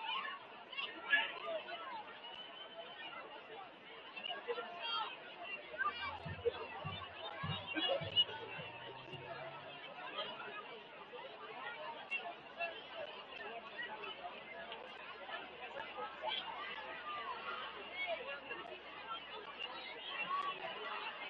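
A crowd chatters and cheers at a distance outdoors.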